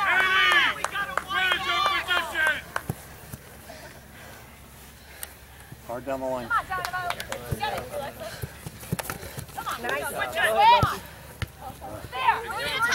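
Young women shout to each other outdoors.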